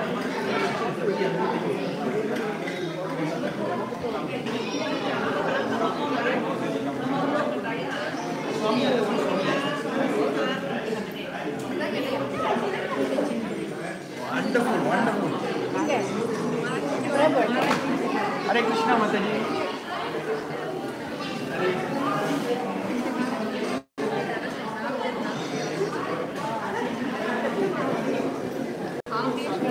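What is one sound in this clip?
Several people chatter in the background of an echoing hall.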